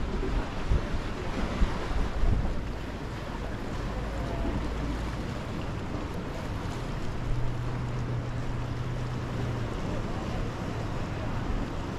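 Gentle sea waves lap against rocks.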